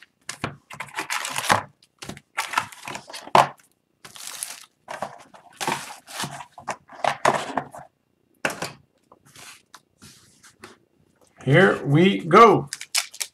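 Cardboard packs slide and tap together.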